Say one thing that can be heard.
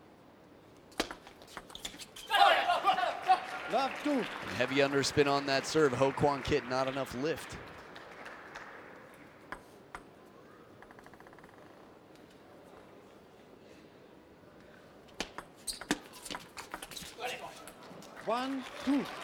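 Table tennis balls click sharply back and forth on a table and bats.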